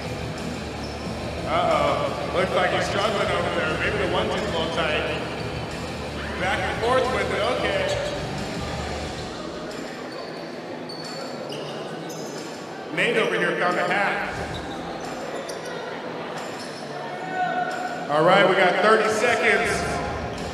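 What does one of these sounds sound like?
A crowd of men and women chatter and murmur in a large echoing hall.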